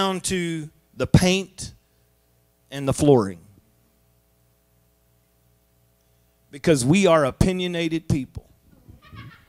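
A man speaks with animation into a microphone, amplified through loudspeakers in a large room, with pauses between phrases.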